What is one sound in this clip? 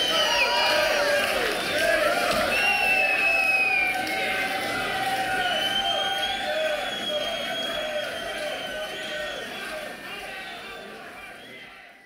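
A large crowd cheers and whistles loudly, then slowly fades.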